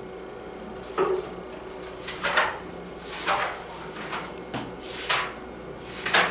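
Paper pages rustle as they are flipped.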